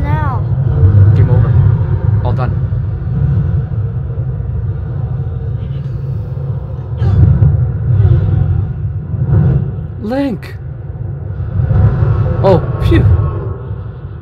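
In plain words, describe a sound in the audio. A young woman exclaims in a high voice close to a microphone.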